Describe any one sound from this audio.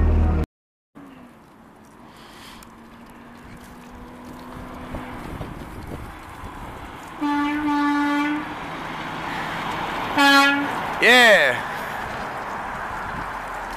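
A truck engine rumbles, growing louder as it approaches and passes close by.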